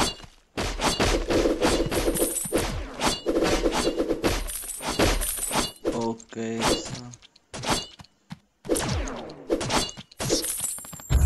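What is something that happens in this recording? Video game sound effects of arrows firing and hits land in quick succession.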